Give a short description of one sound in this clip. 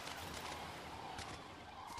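Waves wash gently on a shore.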